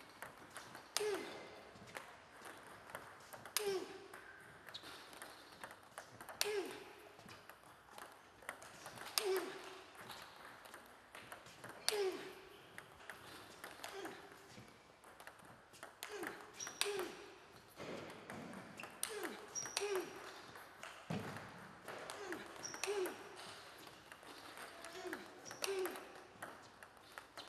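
A ping-pong ball bounces on a table with light taps.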